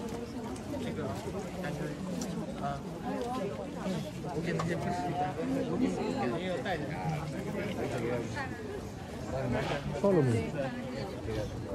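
A crowd of men and women chatter all around, close by and outdoors.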